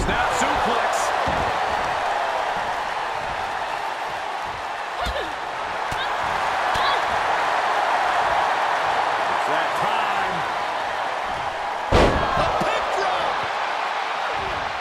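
A large crowd cheers steadily in an echoing arena.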